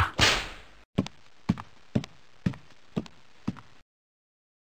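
A rhinoceros stomps away with heavy, evenly spaced thuds.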